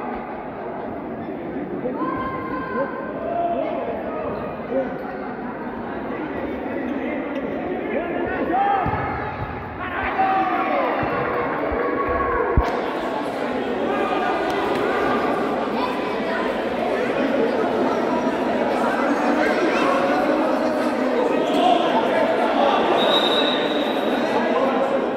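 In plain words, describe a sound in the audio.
A crowd of young spectators chatters and shouts in a large echoing hall.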